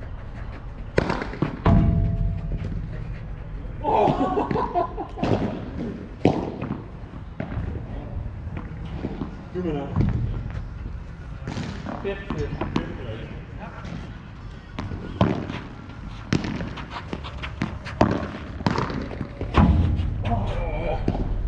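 Padel rackets hit a ball with sharp pops.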